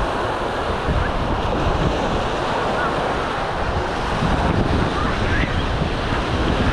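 People chatter and shout in the distance.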